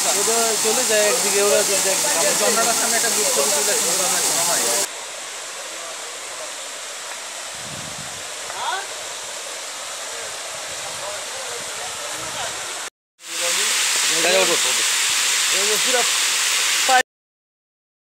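Water rushes and splashes down a waterfall.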